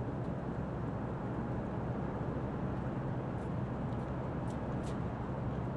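Footsteps scuff on pavement.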